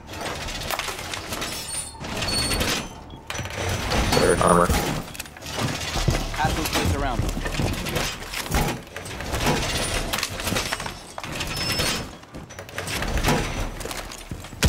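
Heavy metal panels clank and slam into place.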